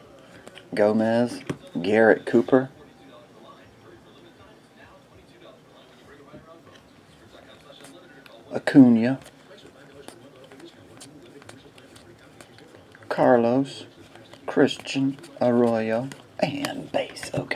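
Glossy trading cards slide and flick against each other in hands.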